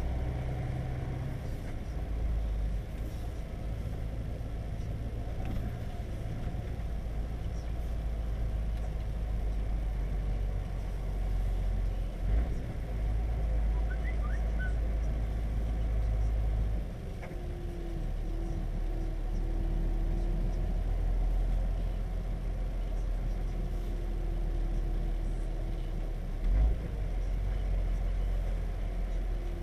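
A vehicle engine rumbles steadily from inside the cab while driving slowly.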